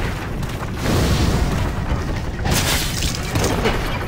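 A fireball bursts with a loud roar.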